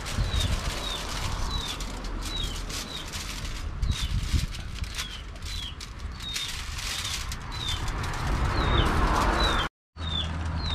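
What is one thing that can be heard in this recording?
Aluminium foil crinkles and rustles as hands fold it.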